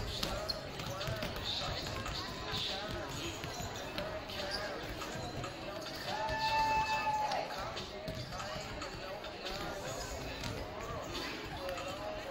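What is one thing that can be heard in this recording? Volleyballs thump as players hit them.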